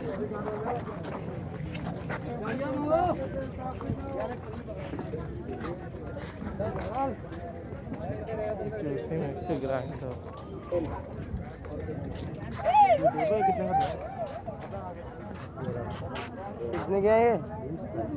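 Men talk loudly nearby in a busy outdoor crowd.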